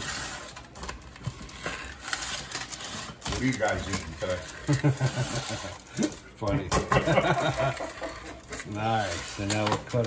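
A pizza cutter rolls and crunches through a crisp crust.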